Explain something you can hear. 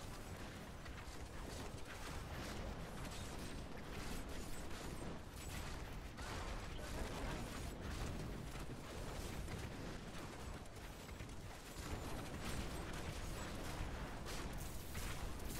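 Fiery spells roar and crackle in a rapid stream of blasts.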